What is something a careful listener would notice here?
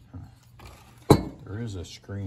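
A metal part knocks against a wooden bench.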